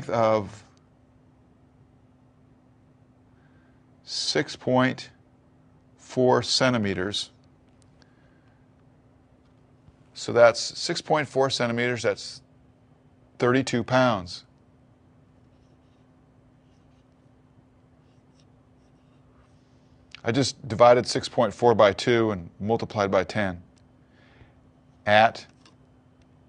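A man speaks calmly into a close microphone, explaining in short bursts with pauses.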